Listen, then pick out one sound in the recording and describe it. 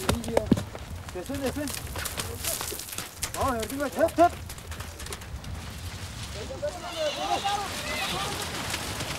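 Horse hooves thud on hard ground at a gallop.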